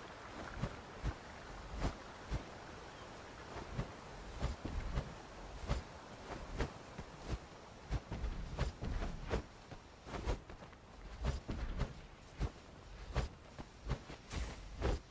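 Footsteps thud quickly over dry ground and grass.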